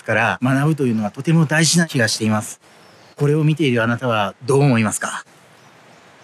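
A middle-aged man speaks calmly and close by, as if into a microphone.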